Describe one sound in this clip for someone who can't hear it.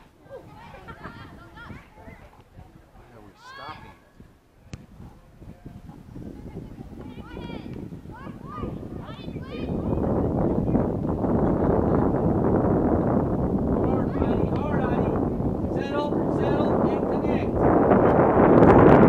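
Young girls shout and call to each other in the distance across an open field.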